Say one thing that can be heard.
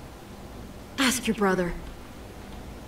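A young girl answers briefly and sharply.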